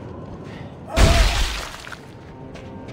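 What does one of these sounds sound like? A wooden crate bursts apart with a loud crash.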